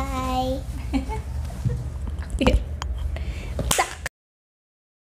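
A young girl speaks and laughs playfully, close by.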